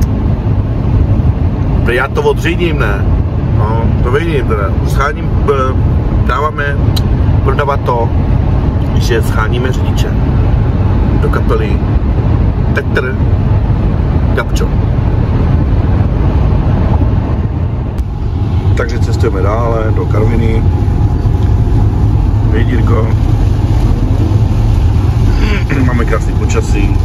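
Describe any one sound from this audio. A car engine and tyres rumble steadily on a wet road.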